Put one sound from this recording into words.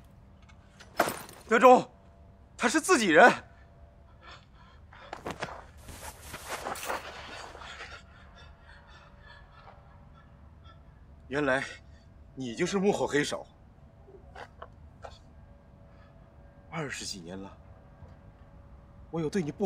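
A young man answers in a low, urgent voice, close by.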